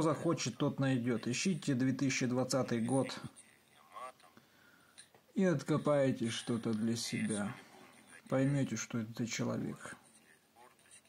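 A man speaks with animation through a small phone speaker.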